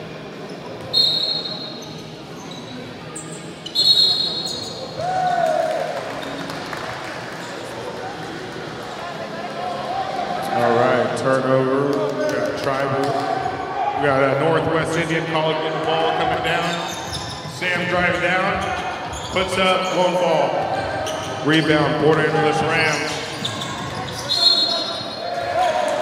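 A referee's whistle blows sharply in an echoing gym.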